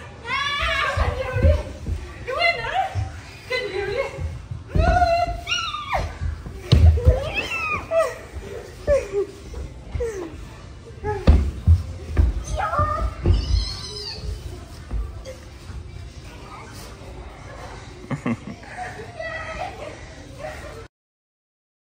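Young women shout and laugh excitedly nearby in a large echoing hall.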